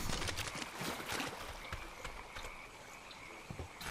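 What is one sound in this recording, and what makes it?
Footsteps rustle through dense plants.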